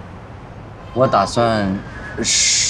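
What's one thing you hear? A young man speaks with concern, close by.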